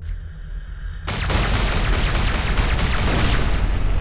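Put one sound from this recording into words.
A laser beam fires with a loud, rushing roar.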